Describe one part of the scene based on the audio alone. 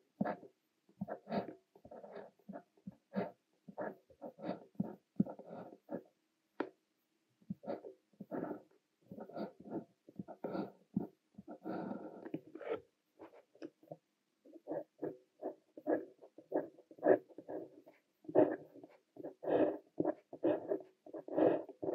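A fountain pen nib scratches across paper up close in short strokes.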